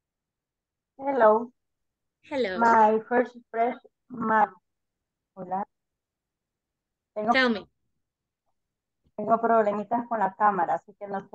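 A woman answers calmly over an online call.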